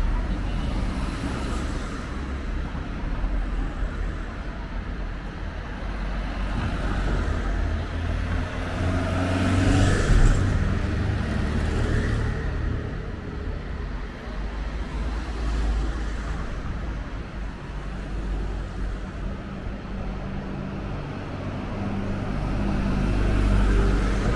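City traffic hums steadily in the background.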